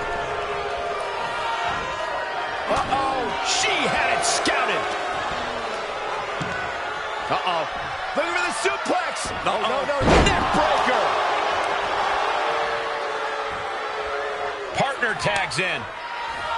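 A crowd cheers and roars in a large arena.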